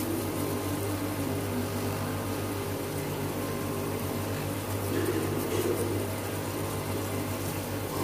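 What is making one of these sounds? A machine motor hums steadily close by.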